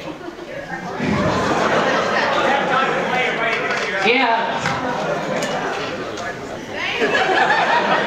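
A large group of young people sings together loudly in an echoing hall.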